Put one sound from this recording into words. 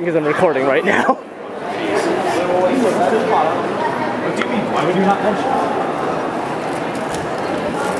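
A crowd of people chatters all around in a large, echoing hall.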